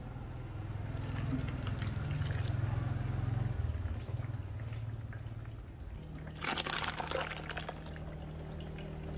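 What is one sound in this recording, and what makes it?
Water and grains pour from a plastic scoop into cloth.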